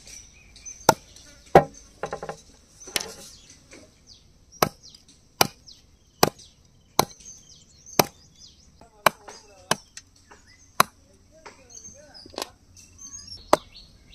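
A heavy cleaver chops sharply into a wooden block again and again.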